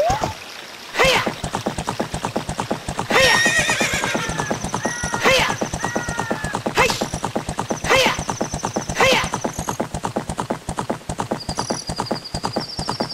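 Hooves gallop quickly and steadily.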